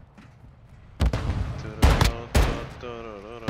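Loud gunshots ring out in quick bursts.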